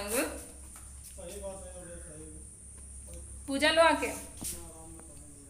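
A young woman speaks close by in a calm, conversational tone.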